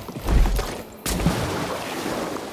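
Water splashes loudly as something plunges in.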